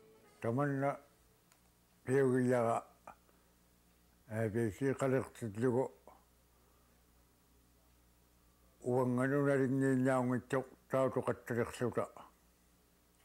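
An elderly man talks calmly and cheerfully into a close microphone, in short bursts with pauses.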